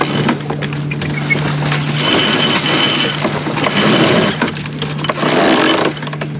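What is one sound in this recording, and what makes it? A sailboat winch clicks as it is cranked by hand.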